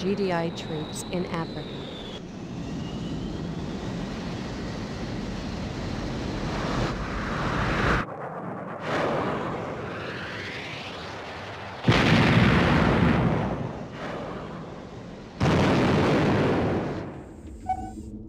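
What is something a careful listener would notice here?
Jet engines roar loudly.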